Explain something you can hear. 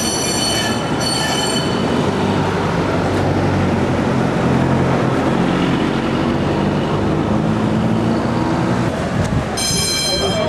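A tram rumbles along rails close by.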